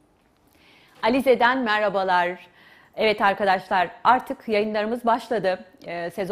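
A woman speaks clearly and calmly into a close microphone.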